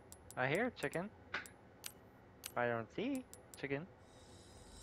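Menu chimes blip and click in quick, rising tones.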